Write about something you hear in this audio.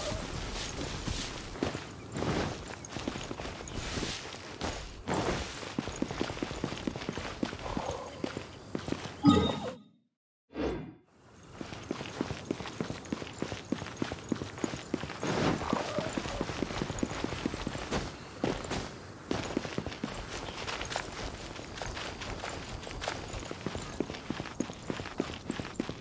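Quick footsteps run over stone and grass.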